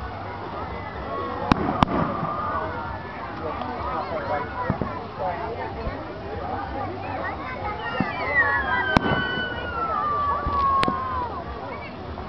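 Fireworks burst with sharp bangs in the distance.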